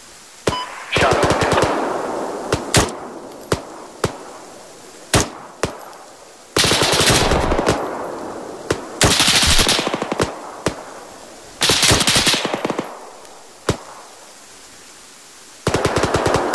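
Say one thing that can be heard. Bursts of automatic gunfire rattle and echo.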